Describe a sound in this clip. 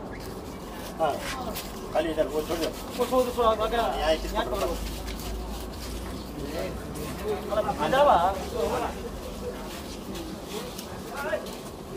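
Men talk excitedly nearby.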